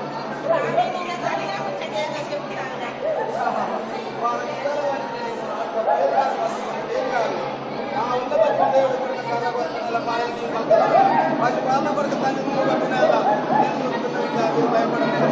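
An elderly man speaks loudly and with animation nearby.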